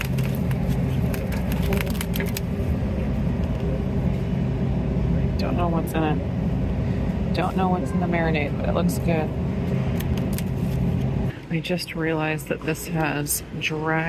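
Plastic meat packaging crinkles as a hand handles it.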